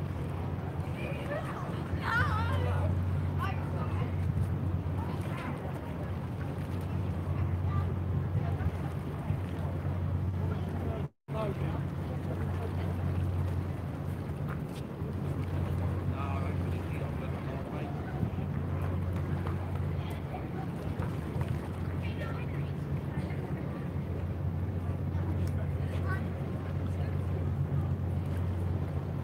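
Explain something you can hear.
Wind blows steadily outdoors by the water.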